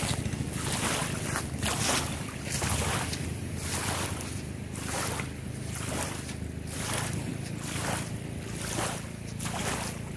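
Small waves lap gently against a sandy shore.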